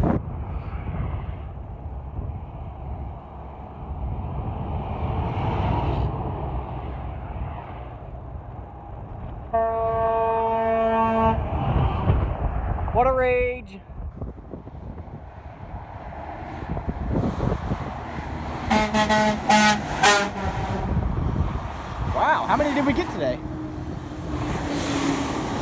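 Traffic roars steadily along a highway, outdoors.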